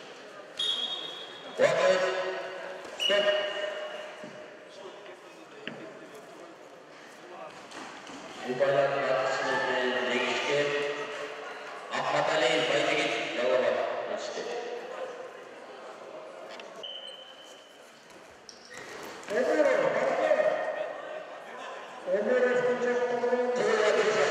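Spectators call out and cheer.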